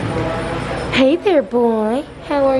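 A dog whines and yelps loudly up close.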